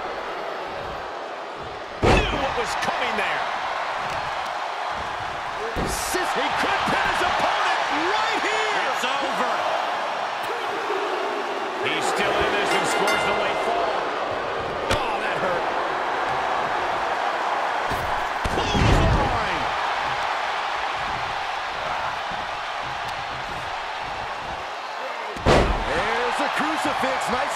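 A large crowd cheers and roars throughout in a big echoing arena.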